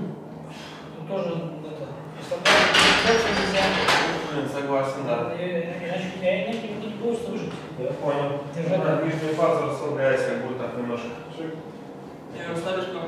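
A man talks with animation nearby in an echoing room.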